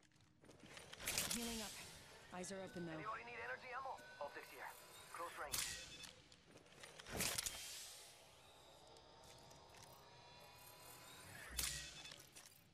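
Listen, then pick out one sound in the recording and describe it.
A syringe clicks and hisses as it is pressed.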